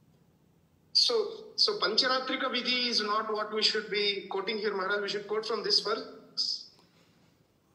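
An elderly man speaks close to the microphone.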